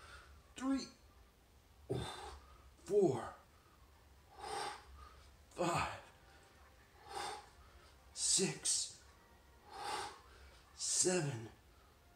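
A middle-aged man grunts and breathes hard close by, in a rhythm.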